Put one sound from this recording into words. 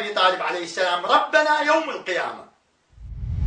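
A man speaks forcefully into a microphone.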